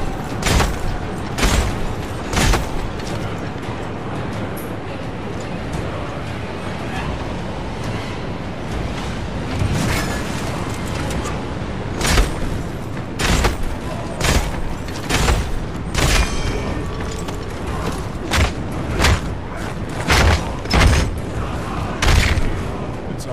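Heavy blows land on bodies in a fight, thudding again and again.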